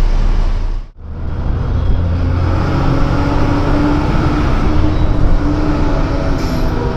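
Nearby buses drive past with a low roar.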